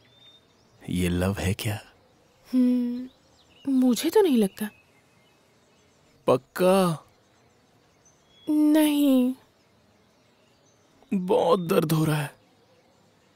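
A young man speaks softly and close by.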